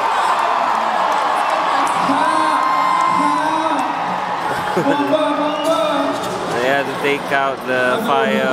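Loud music plays through loudspeakers in a large echoing arena.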